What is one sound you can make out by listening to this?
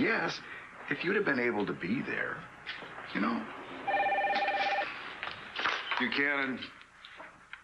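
A middle-aged man talks with animation.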